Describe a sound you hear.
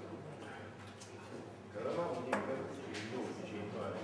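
Darts thud sharply into a dartboard one after another.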